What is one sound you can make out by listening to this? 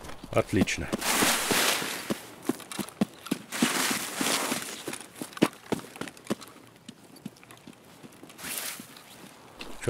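Grass and branches brush and rustle in short bursts.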